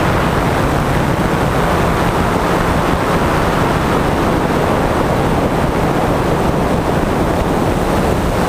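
Wind rushes steadily and loudly high in the open air.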